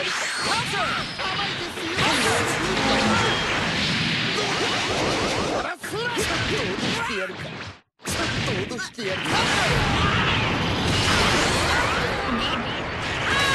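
Punches and kicks land with sharp impacts.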